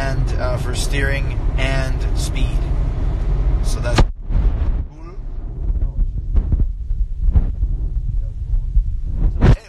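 A middle-aged man talks casually and close to a phone microphone.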